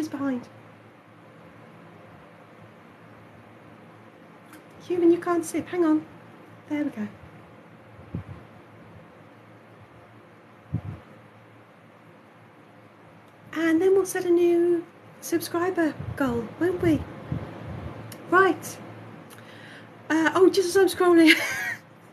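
A man speaks in a playful, silly character voice close by, in short bursts with pauses.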